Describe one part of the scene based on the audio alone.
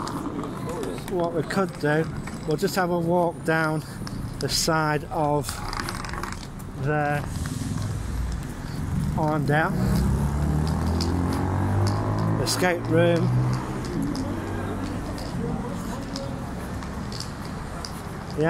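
City traffic rumbles along a busy street outdoors.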